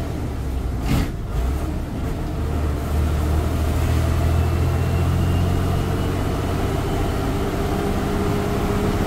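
A bus engine hums and rumbles steadily from inside the cab.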